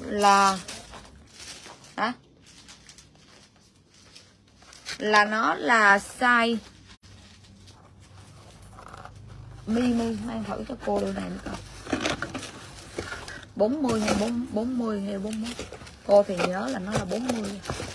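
Paper crinkles as a shoe is unwrapped.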